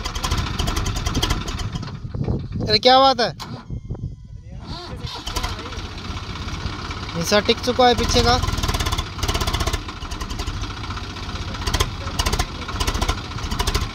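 A tractor engine chugs loudly up close.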